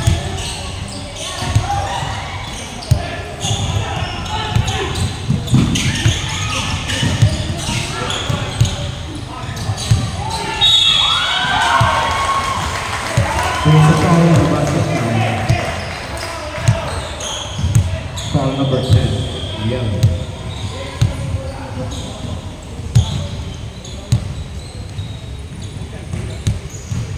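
Young people talk and shout in a large echoing hall.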